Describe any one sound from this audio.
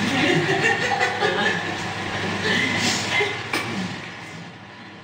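A young woman laughs heartily.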